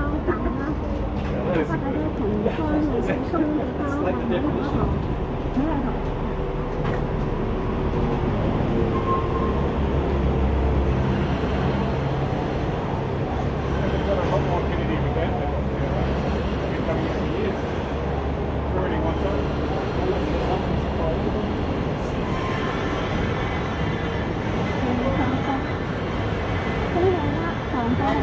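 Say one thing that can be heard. Voices of men and women murmur nearby on a busy street.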